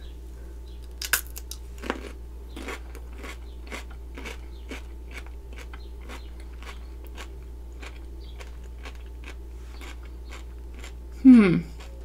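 A young woman crunches and chews a cucumber close to a microphone.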